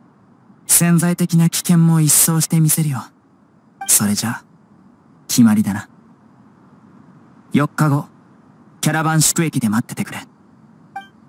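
A young man speaks calmly and firmly, close up.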